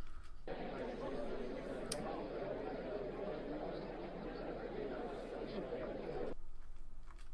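A crowd murmurs softly in a stadium.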